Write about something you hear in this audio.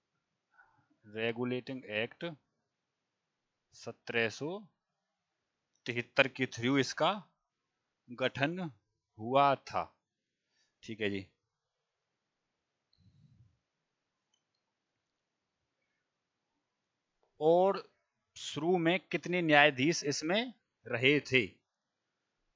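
A man speaks calmly into a headset microphone, in short bursts with pauses.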